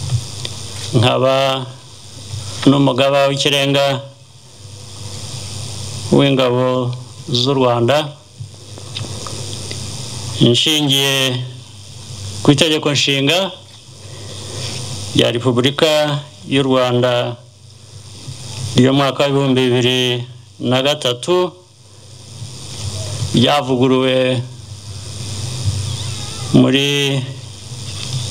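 A man speaks slowly and formally into a microphone over a loudspeaker, with pauses between phrases.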